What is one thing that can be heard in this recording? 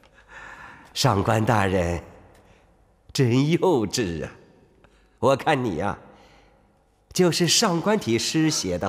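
An elderly man speaks in a mocking, drawn-out tone, close by.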